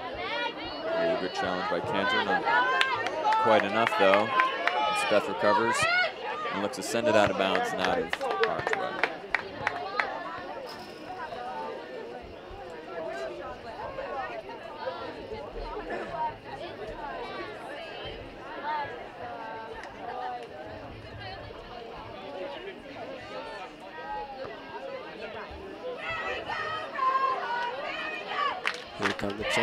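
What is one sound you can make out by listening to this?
A crowd of spectators cheers and shouts nearby outdoors.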